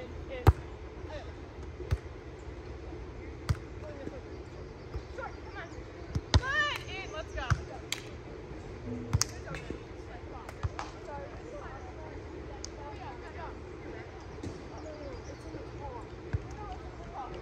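A volleyball thumps off players' forearms and hands.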